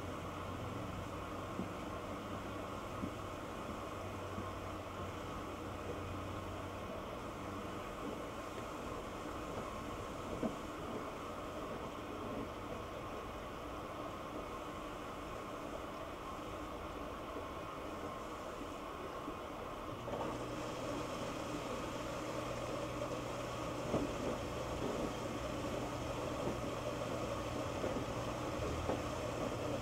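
A washing machine drum turns with a steady hum.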